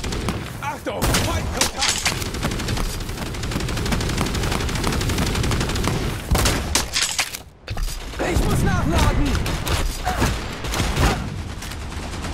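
Rifle shots crack sharply, several times.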